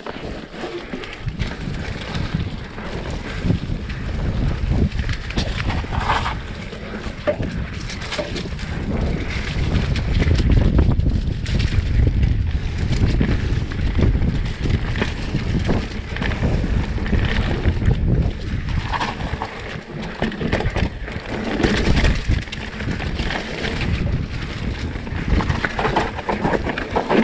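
Bicycle tyres roll and crunch over a rough dirt trail.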